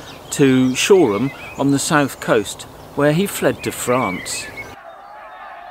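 An older man speaks calmly, close by, outdoors.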